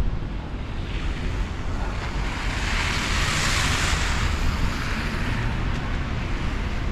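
A car's tyres hiss through slush as it passes close by.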